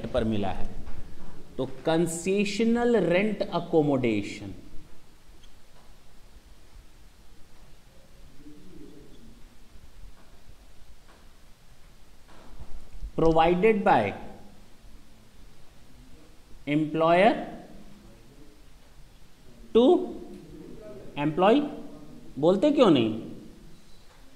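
A man speaks calmly, close to a microphone, in short bursts.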